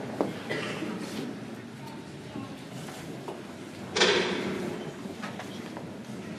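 A young woman speaks calmly into a microphone, heard through loudspeakers in an echoing hall.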